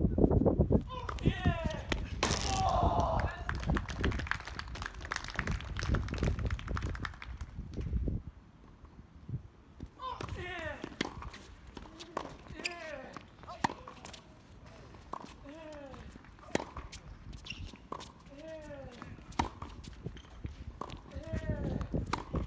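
A tennis ball is struck sharply by rackets, back and forth.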